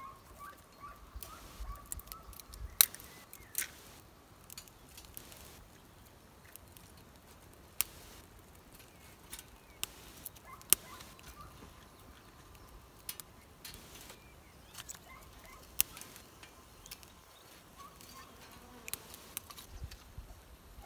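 Dry wooden sticks knock and clatter into a small stainless steel wood stove.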